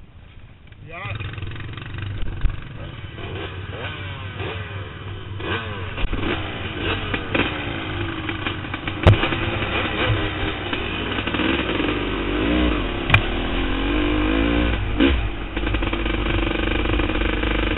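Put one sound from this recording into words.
A dirt bike engine revs and roars close by.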